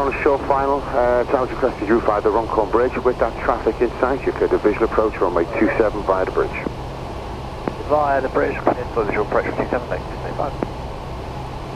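A young man speaks calmly through a headset intercom.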